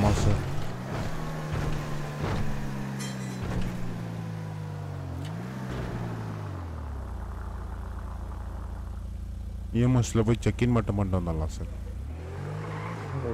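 A car engine hums and revs, rising and falling as the car speeds up and slows down.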